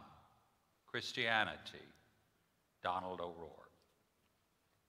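A man speaks briefly through a microphone in a large echoing hall.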